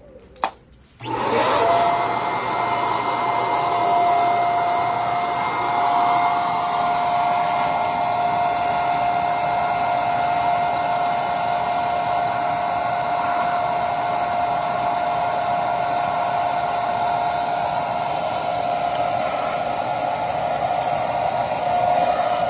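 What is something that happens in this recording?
An electric air pump hums steadily and loudly.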